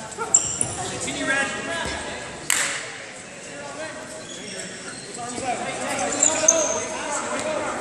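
Voices of a crowd chatter and call out in a large echoing hall.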